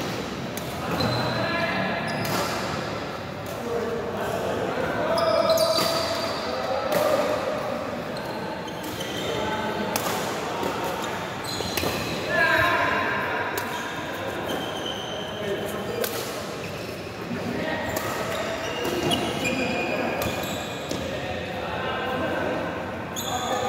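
Men's voices call out and talk in a large echoing hall.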